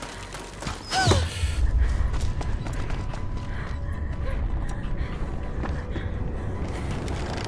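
Footsteps thud on stone and wooden boards.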